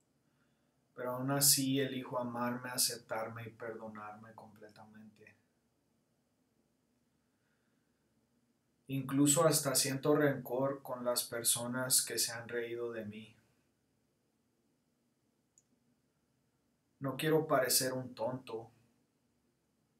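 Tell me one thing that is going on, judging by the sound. A man speaks calmly and close to the microphone, in short bursts with pauses.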